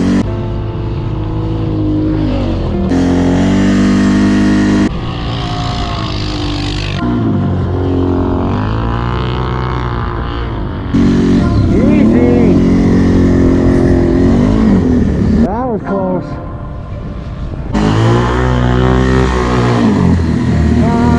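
A quad bike engine roars and revs up and down nearby.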